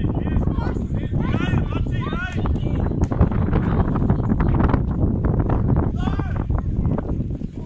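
Children shout excitedly across a playing field.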